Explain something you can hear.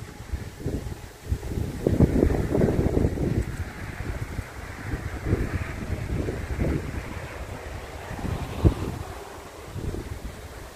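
Gusts of wind rumble and buffet loudly outdoors.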